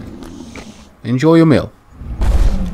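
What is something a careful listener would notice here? A large dinosaur lets out a loud, wavering roar.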